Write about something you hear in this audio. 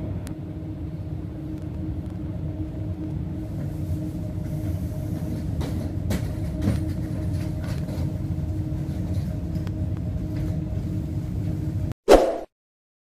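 A train rumbles steadily as it rolls slowly through a station.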